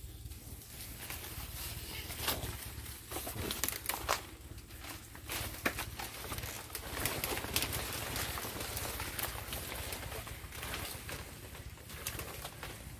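Large leaves rustle and scrape as they are pushed aside.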